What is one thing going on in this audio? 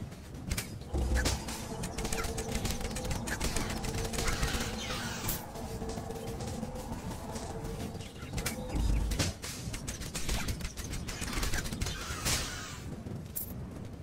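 Sword hits and thuds ring out in a video game fight.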